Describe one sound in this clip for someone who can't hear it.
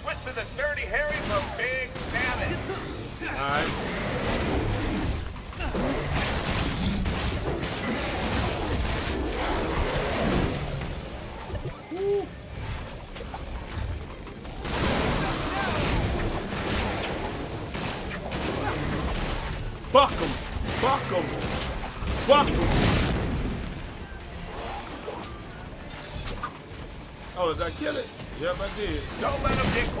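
Gunfire and fiery explosions burst again and again.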